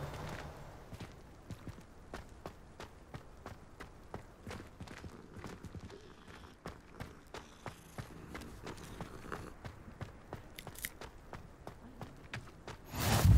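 Footsteps patter quickly on grass and stone paths.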